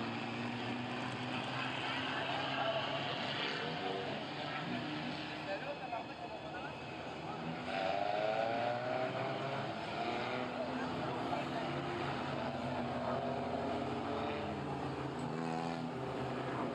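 Several race car engines rumble loudly and rev up and down as cars drive slowly past.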